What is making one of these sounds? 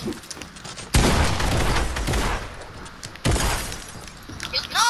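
Loud blasts crash and rumble.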